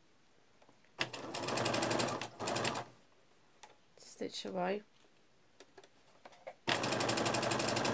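A sewing machine runs in quick bursts, stitching with a rapid whirring hum.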